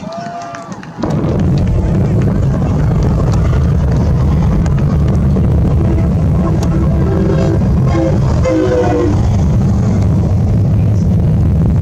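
A deep, heavy rumble from a distant explosion roars on steadily.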